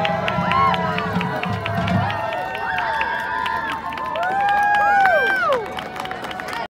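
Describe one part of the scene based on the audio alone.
A marching band plays music outdoors.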